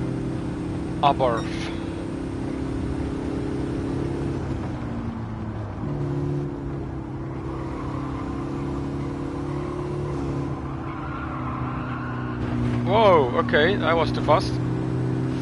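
Tyres squeal in short bursts on corners.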